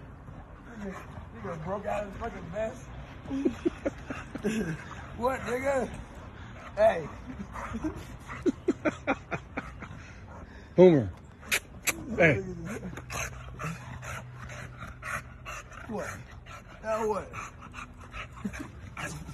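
A dog growls playfully.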